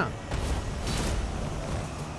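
A heavy blade swooshes through the air.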